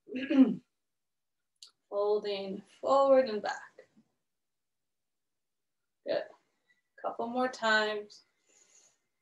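A woman speaks calmly into a close microphone, with pauses.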